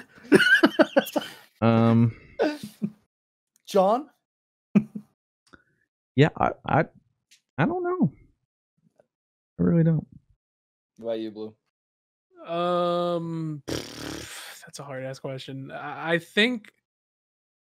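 A young man talks with animation through a headset microphone, in an online call.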